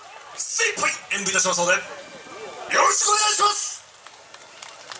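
A man shouts through a loudspeaker in short, lively calls.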